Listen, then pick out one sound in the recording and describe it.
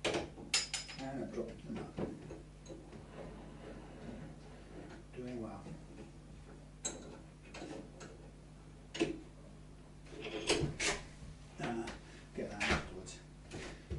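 Tools clink and knock on a workbench.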